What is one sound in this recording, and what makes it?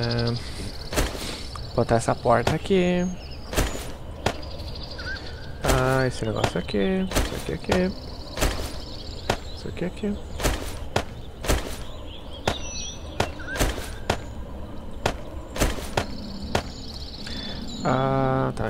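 Short clicks sound as items are moved about in a game's inventory.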